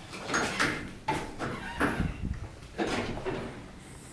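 An automatic sliding door rumbles open.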